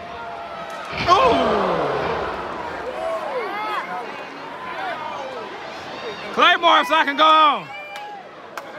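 Men in the crowd nearby yell loudly.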